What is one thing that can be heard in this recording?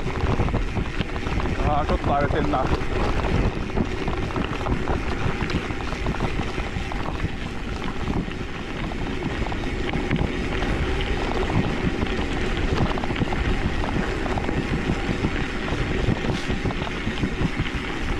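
Bicycle tyres crunch and rattle over a rough gravel trail.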